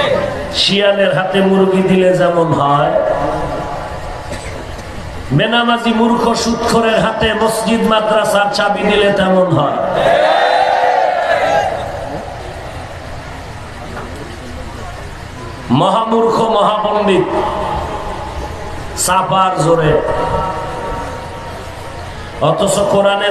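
A man chants and preaches loudly into a microphone, echoing over loudspeakers.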